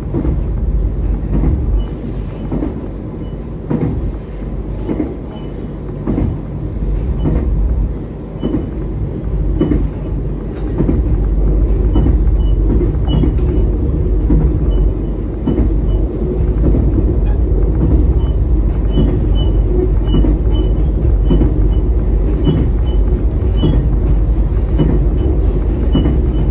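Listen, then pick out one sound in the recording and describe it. A train rumbles steadily along the rails, heard from inside the cab.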